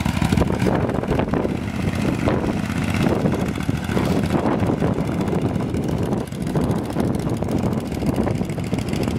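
A small motorbike engine putters and revs as the bike rides past and away.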